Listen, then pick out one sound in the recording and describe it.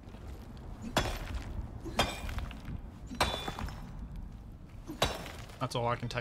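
A pickaxe strikes rock with sharp knocks.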